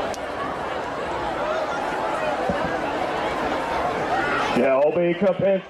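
A large crowd cheers and applauds outdoors.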